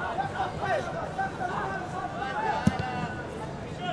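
A football is kicked hard with a thud.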